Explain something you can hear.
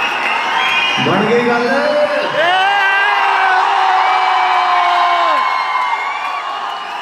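A man sings into a microphone through loudspeakers, holding long notes.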